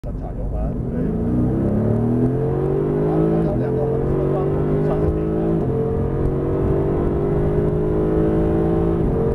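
A car engine revs hard, climbing in pitch and dropping back with each gear change.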